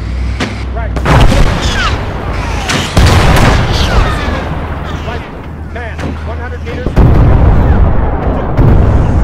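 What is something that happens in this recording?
Cannon shots boom with loud blasts.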